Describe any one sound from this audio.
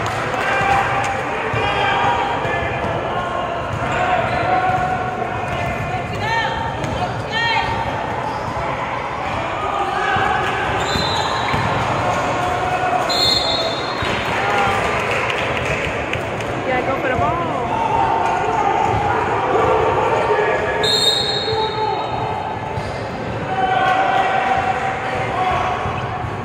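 Players and spectators shout and call out in a large echoing gym.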